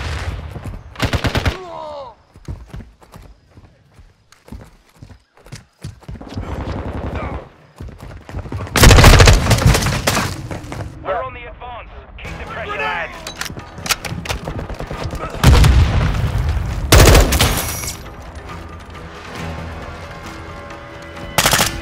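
Rapid gunfire rattles out in loud, short bursts.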